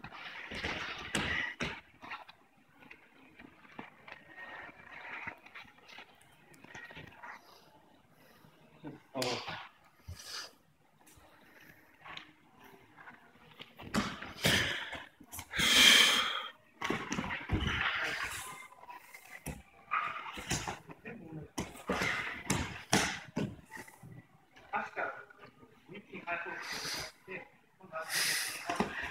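Bodies thump and slap onto a padded mat.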